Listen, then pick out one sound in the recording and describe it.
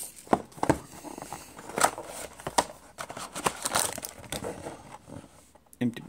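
Cardboard flaps scrape and tear open.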